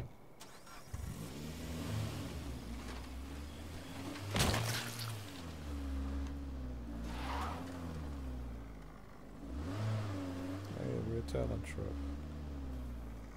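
A car engine starts and revs up and down as the car drives.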